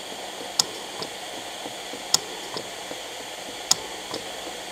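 A breathing machine clicks at a steady pace.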